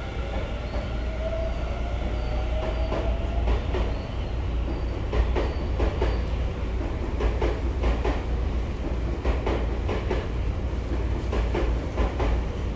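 A train rumbles along the tracks close by.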